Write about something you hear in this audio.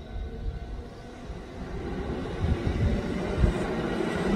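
A train rumbles past in the distance.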